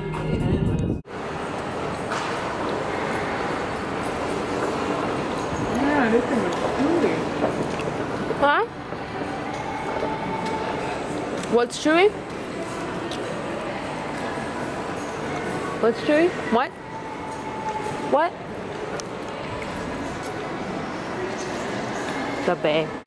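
A murmur of distant voices echoes through a large indoor hall.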